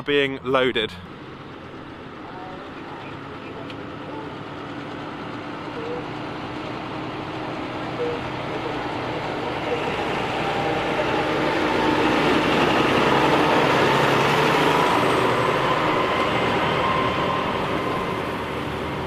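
A tractor engine rumbles and grows louder as the tractor draws near.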